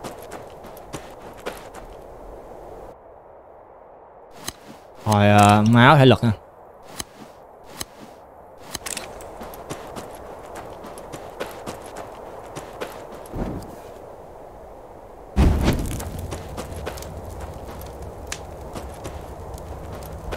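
A young man speaks quietly into a microphone.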